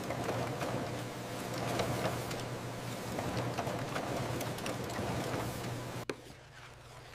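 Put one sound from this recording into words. A printing machine hums and whirs steadily.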